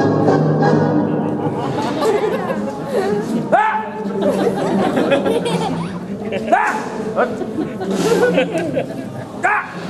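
A crowd of men and women chatters outdoors nearby.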